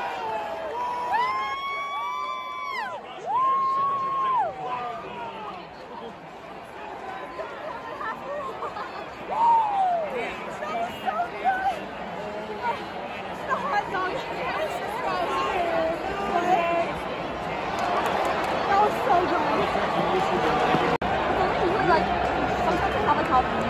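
A large stadium crowd cheers and shouts, growing louder toward the end.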